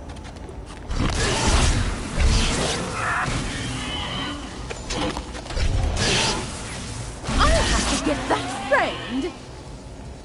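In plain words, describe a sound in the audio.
Energy weapons fire in loud crackling bursts.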